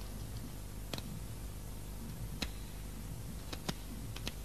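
A switch clicks as a button is pressed.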